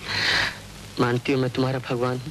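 A young man speaks softly close by.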